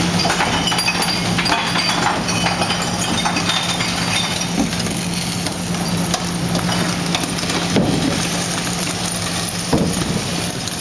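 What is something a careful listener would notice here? Trash bags and boxes thud into a truck's hopper.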